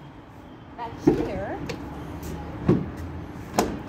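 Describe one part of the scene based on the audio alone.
A van's rear door clicks open.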